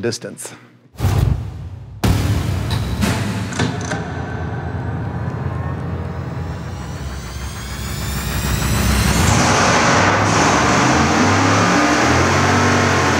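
A large engine idles with a deep rumble, then revs up loudly.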